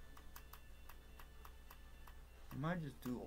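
Menu selections click in quick succession.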